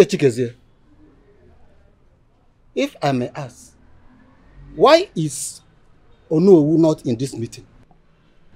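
A middle-aged man speaks emphatically in short bursts, close by.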